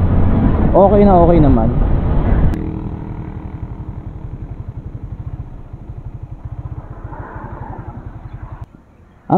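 A motorcycle engine drops in pitch as it slows, then putters at idle.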